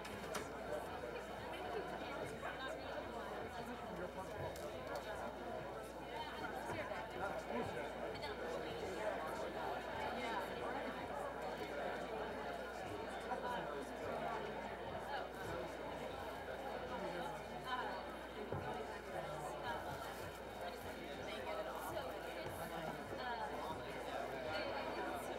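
An audience of men and women chatters quietly in a large room.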